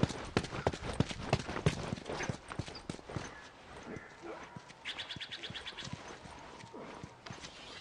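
Footsteps run across stone paving.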